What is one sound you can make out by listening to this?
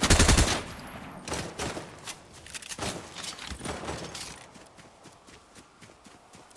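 Footsteps patter quickly across grass.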